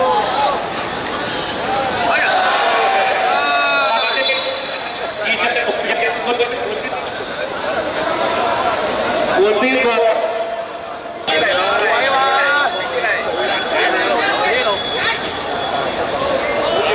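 Men shout and call to each other outdoors.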